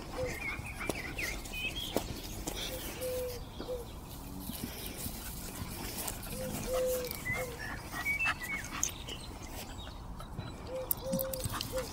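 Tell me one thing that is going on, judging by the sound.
A dog's paws rustle through grass.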